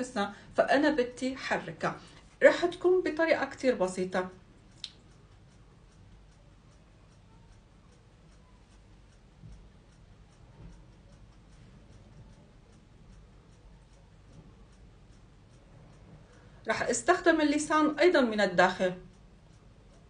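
A woman speaks with animation, close by.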